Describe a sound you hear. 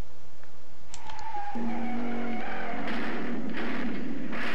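A car crashes with a loud noisy burst.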